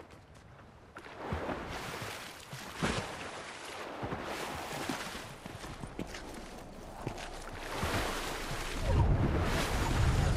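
A game character swims through water with splashing.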